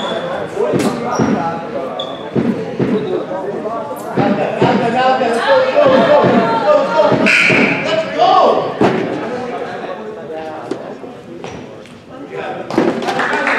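Sneakers squeak on a wooden floor in a large echoing hall.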